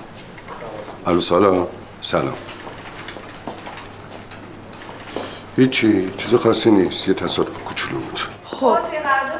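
An elderly man speaks on a phone in a low voice.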